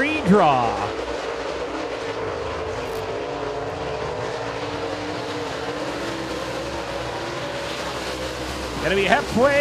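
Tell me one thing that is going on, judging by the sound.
Engines drone steadily in the distance.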